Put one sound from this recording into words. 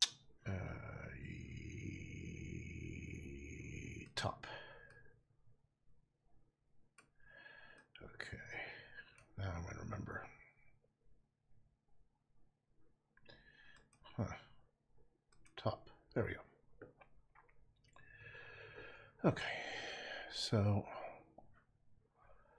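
A middle-aged man talks calmly through a microphone.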